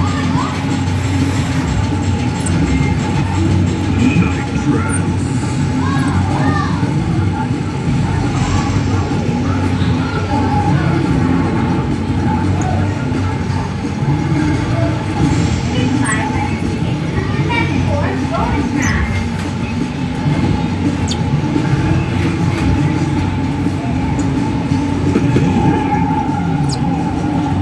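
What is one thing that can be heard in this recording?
A racing game's engine roars loudly and steadily through arcade speakers.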